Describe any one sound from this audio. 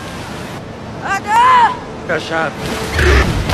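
A young man shouts in alarm.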